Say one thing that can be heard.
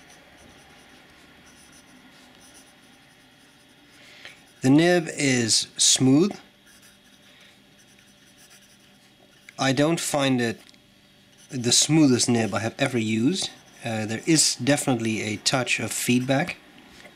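A fountain pen nib scratches softly across paper.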